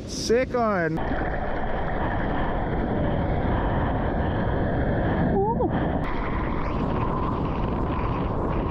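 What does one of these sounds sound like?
Water churns and rushes close by.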